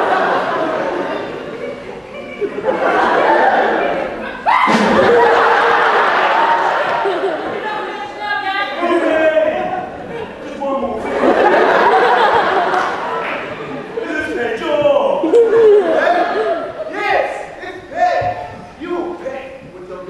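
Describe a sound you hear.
Actors speak and call out loudly on a stage, heard from the audience in a large hall.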